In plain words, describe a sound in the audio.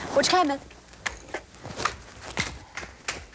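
Footsteps tap across the floor.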